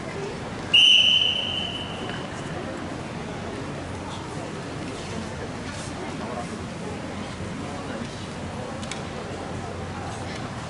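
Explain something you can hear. A crowd of young people murmurs quietly in a large echoing hall.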